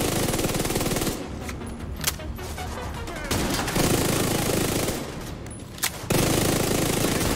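An automatic rifle fires rapid bursts in an echoing hall.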